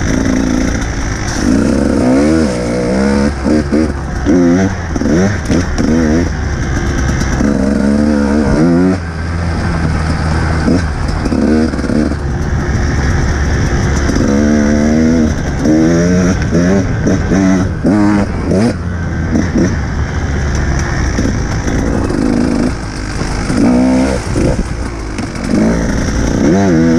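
A dirt bike engine revs and roars up and down close by.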